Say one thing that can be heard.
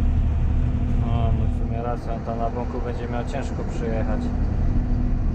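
A young man speaks briefly nearby, over the engine noise.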